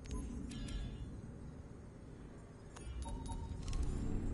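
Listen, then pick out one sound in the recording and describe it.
Short electronic menu beeps chime.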